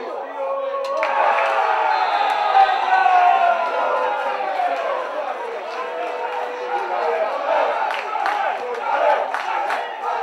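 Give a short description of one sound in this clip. Young men shout and cheer across an open field.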